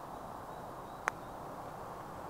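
A putter taps a golf ball.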